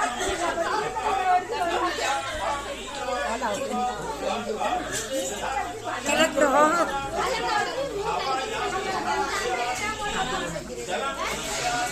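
Cups clink on a tray.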